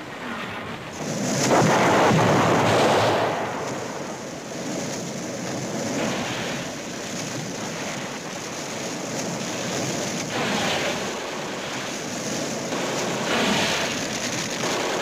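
A flamethrower roars as it shoots flame.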